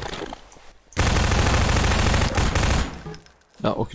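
A submachine gun fires a rapid burst at close range.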